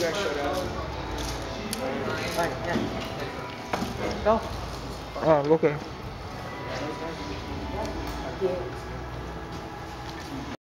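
Several people talk in the background of a large echoing room.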